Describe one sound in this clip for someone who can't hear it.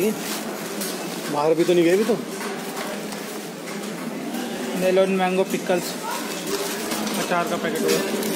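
A paper receipt rustles and crinkles in hand.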